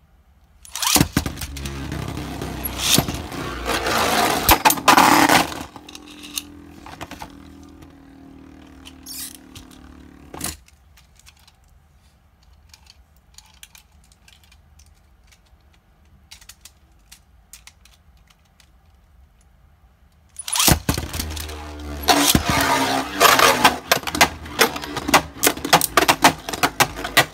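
Spinning tops whir and clatter against each other in a plastic arena.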